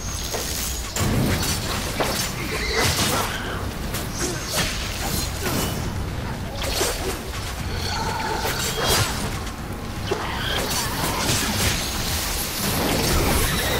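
A sword clashes and slashes in rapid strikes.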